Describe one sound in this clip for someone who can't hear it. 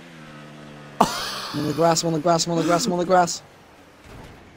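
Racing cars collide with a sharp crunch.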